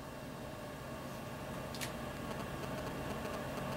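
Paper rustles close by.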